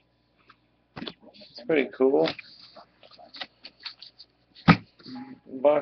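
Trading cards slap and rustle as they are handled.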